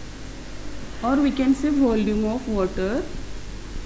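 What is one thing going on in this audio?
A woman speaks calmly and clearly nearby.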